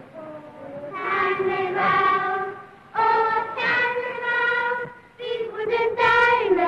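Young girls sing together in a high, clear chorus.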